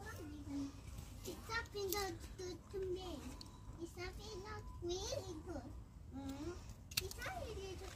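Garden shears snip through tomato stems.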